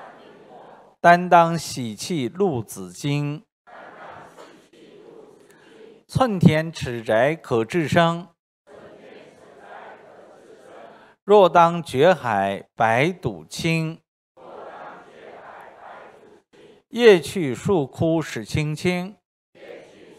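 A middle-aged man reads out through a microphone in short loud bursts with pauses.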